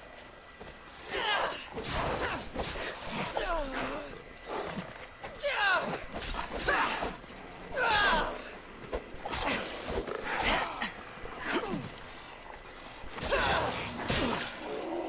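Wolves snarl and yelp in high, wavering cries.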